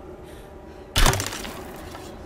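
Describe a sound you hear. An arrow thuds sharply into a wooden wall.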